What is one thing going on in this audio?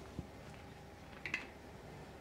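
Oil pours into a pan.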